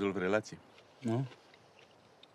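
A man asks a short question quietly nearby.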